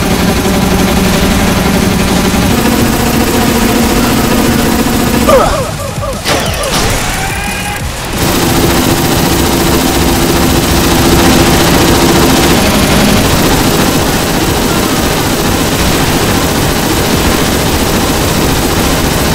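Game battle effects crackle and blast without pause.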